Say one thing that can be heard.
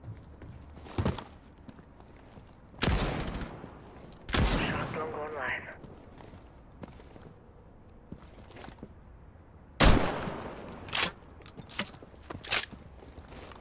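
A rifle fires loud, sharp shots that ring out.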